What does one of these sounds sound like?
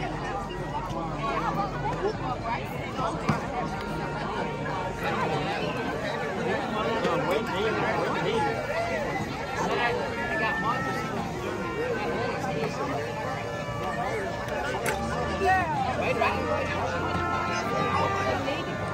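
Men and women nearby talk and shout over the crowd.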